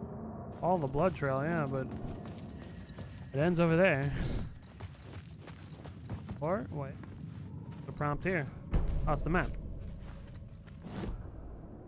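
Footsteps crunch on debris.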